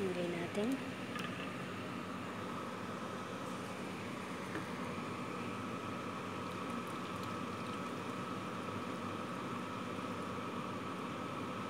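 Sauce sizzles and bubbles steadily in a pot.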